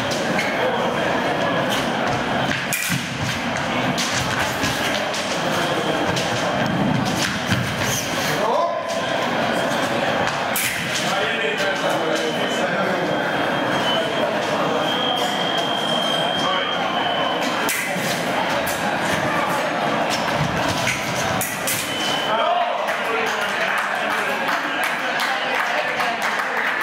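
Fencers' feet stamp and shuffle on the floor.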